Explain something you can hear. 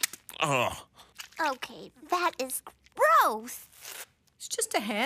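A small, squeaky cartoon voice speaks in alarm.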